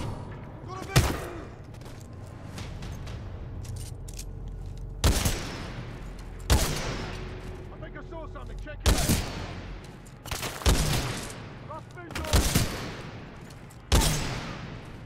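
Gunshots crack loudly with echoing tails, one at a time.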